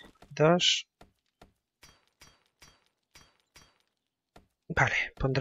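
Footsteps tread softly on grass at an even pace.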